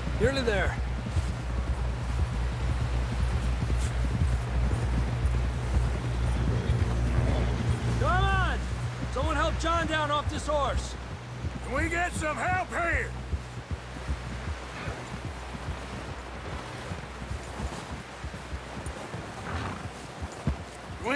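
Horses gallop through snow with heavy, rapid hoofbeats.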